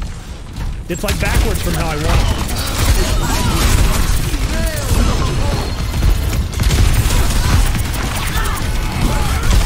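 Video game weapons fire in rapid, loud bursts.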